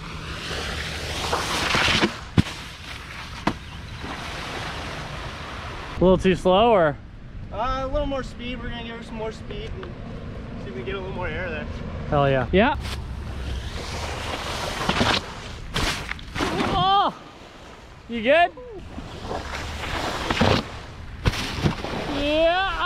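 A wakeboard skims across water, throwing up spray.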